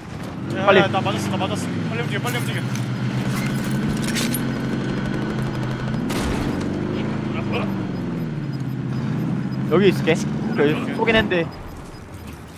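A vehicle engine hums and revs as it drives over rough ground.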